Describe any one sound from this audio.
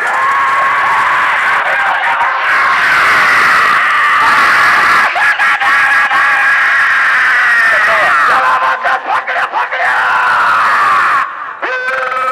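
A large outdoor crowd shouts and cheers.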